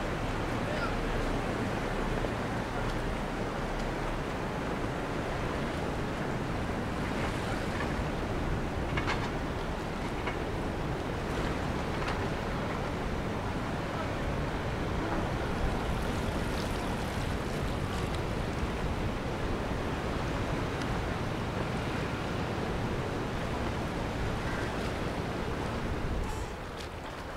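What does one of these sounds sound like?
Water laps gently against a stone quay.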